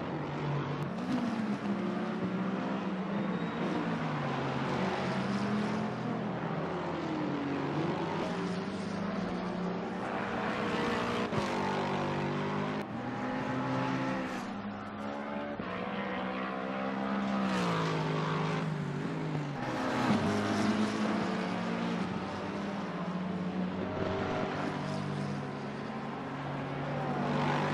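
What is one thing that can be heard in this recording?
A racing car engine roars at high revs as the car speeds past.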